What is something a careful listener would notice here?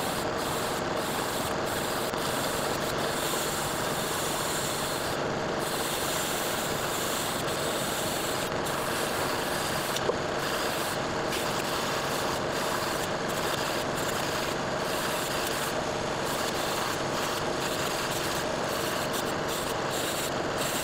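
A metal part grinds against a spinning abrasive wheel.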